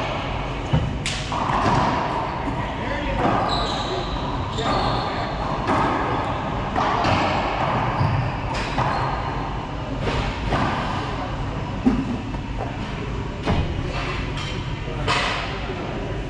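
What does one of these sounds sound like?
Shoes squeak and patter on a wooden floor.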